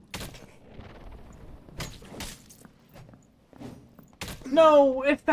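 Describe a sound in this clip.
Heavy weapons strike and thud in a fight.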